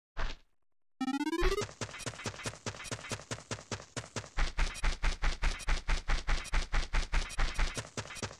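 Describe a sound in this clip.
Cheerful electronic game music plays at a lively, steady beat.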